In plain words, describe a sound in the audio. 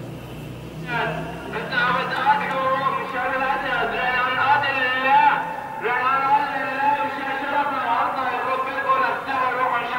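A man's voice chants loudly through loudspeakers, echoing outdoors.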